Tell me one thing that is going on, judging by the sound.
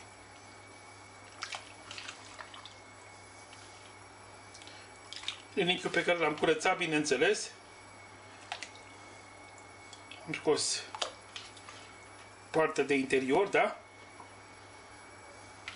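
Pieces of meat plop and splash into a pot of liquid.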